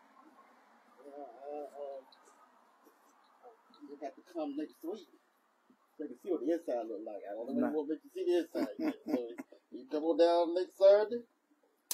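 An older man speaks calmly and clearly, close by.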